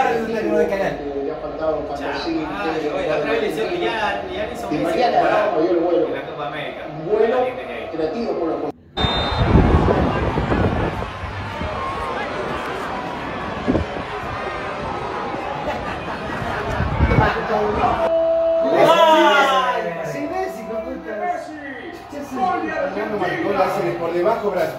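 Several young men talk and chatter nearby.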